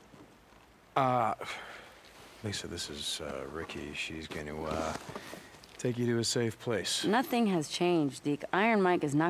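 A man speaks in a tired, hesitant voice, close by.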